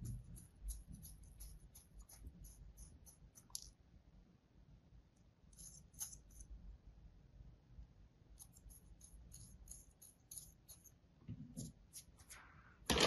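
A needle tool scratches and scrapes softly through kinetic sand.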